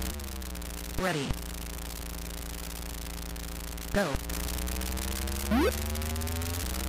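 Sharp electronic bleeps sound a race countdown.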